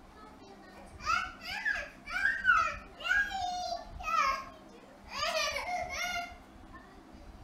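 A young child speaks and squeals with animation close by.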